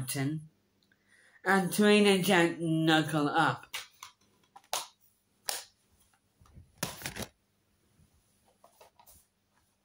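A plastic disc case clicks open and shut.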